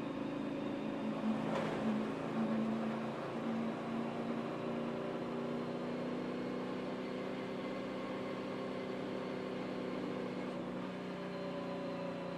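A race car engine drones steadily up close.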